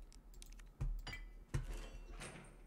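Bolt cutters snap through a metal chain.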